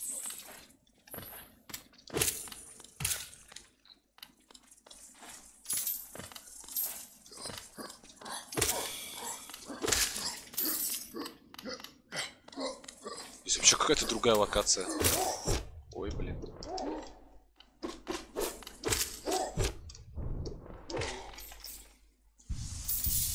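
Game sword slashes and hits clank sharply.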